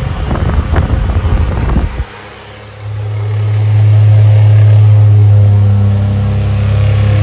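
An electric fan hums steadily as its blades whir.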